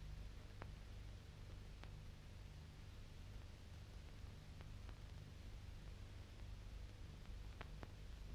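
A tracked vehicle's engine rumbles low and steadily.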